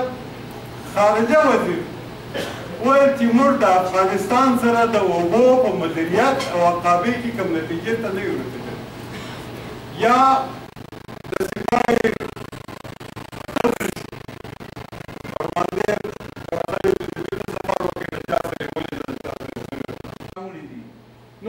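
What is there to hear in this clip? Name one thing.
An elderly man speaks forcefully into a microphone, heard through a loudspeaker.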